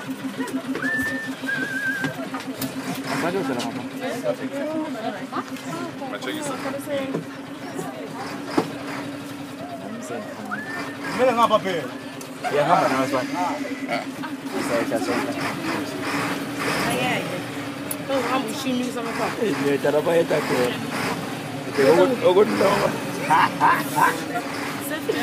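Young people talk and shout with animation nearby.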